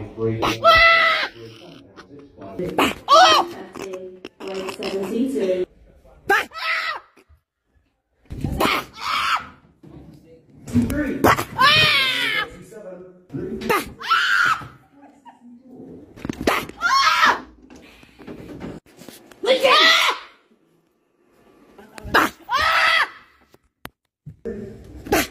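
An elderly woman shrieks and shouts with excitement close by.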